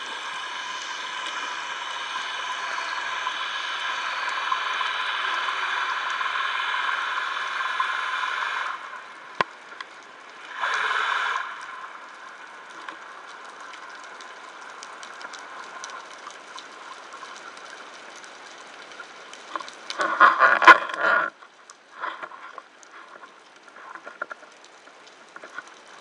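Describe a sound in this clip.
A steady, muffled underwater hiss and crackle surrounds the listener.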